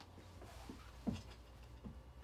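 A man drops onto a couch with a soft thump.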